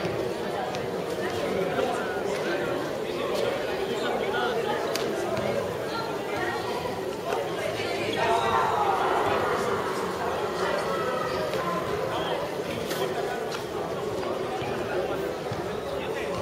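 A crowd of young men talk and call out together, echoing in a large open hall.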